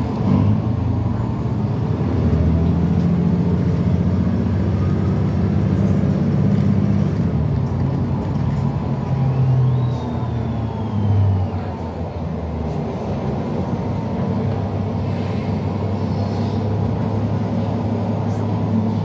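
A bus engine rumbles steadily from inside as the bus drives along.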